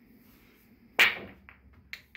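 A cue ball cracks into a rack of pool balls.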